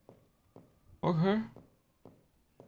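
A man exclaims briefly and loudly into a microphone.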